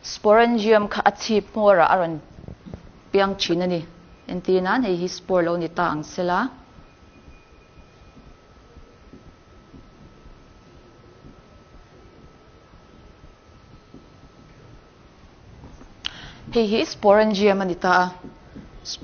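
A woman speaks clearly in a lecturing tone, close by.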